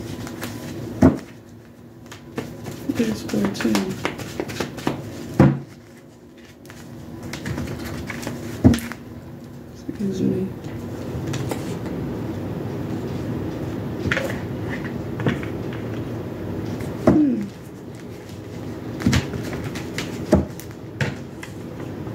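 Cards tap on a table.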